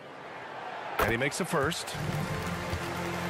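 A basketball swishes through the net.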